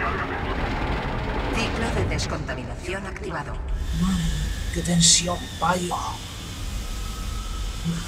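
Steam hisses loudly.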